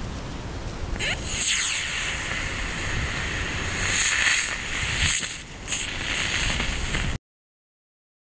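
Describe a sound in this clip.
A rocket motor roars as it launches and hisses upward.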